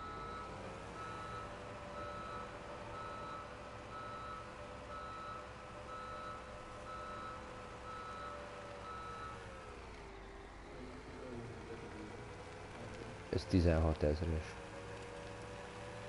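A tractor engine hums steadily as it drives along, then drops in pitch.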